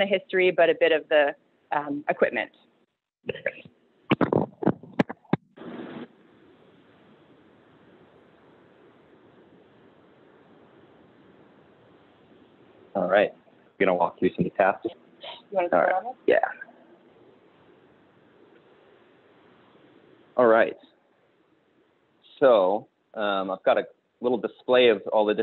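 A woman speaks calmly through an online call, with short pauses.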